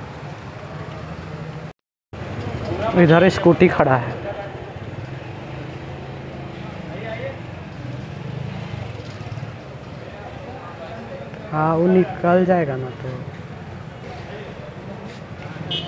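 Motorbike engines idle and rumble nearby in busy street traffic.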